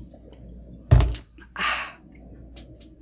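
A young woman burps loudly.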